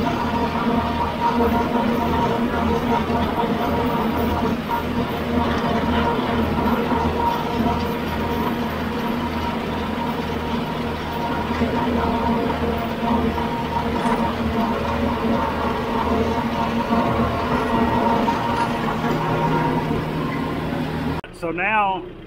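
A tractor engine drones steadily close by.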